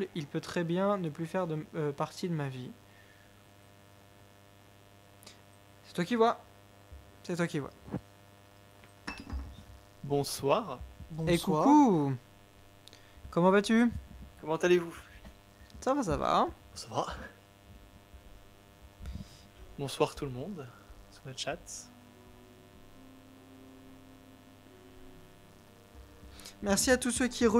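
A young man speaks close into a microphone, in short bursts with pauses.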